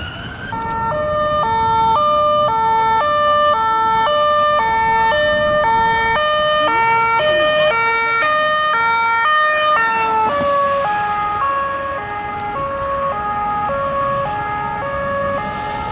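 Car engines hum and tyres roll on the road.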